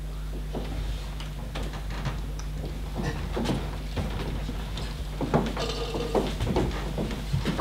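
Several young men and women speak and call out on a stage, heard from a distance in an echoing hall.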